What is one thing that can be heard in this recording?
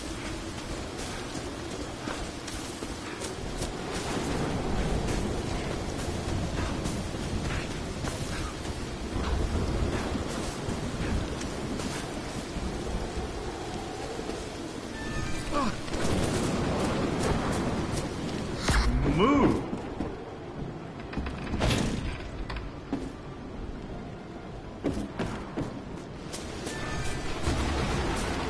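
Footsteps crunch on a forest floor.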